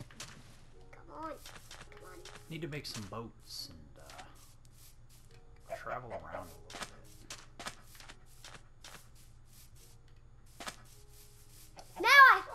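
Footsteps tread softly over grass and sand.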